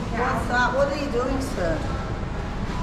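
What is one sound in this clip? A woman speaks close by.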